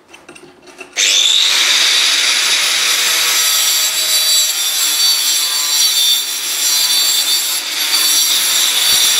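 An angle grinder whines loudly as it cuts metal.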